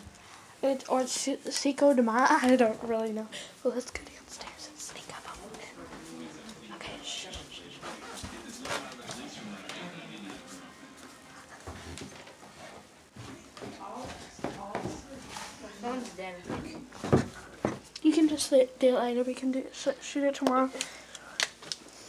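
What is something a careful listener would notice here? A young woman talks animatedly, close up.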